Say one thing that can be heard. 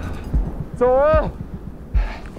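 A man shouts out eagerly outdoors.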